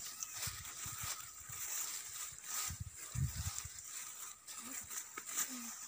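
Water trickles gently in a slow stream outdoors.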